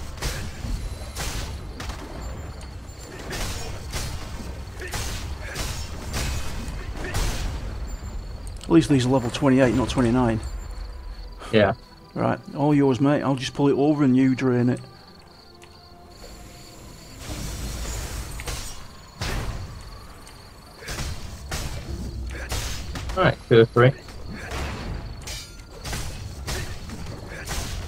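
Sword blows strike and thud in quick bursts.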